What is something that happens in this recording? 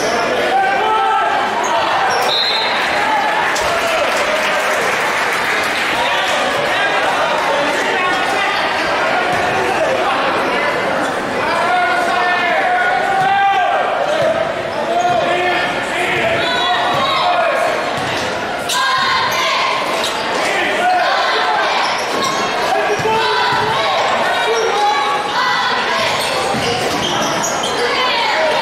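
A large crowd cheers and shouts in an echoing gym.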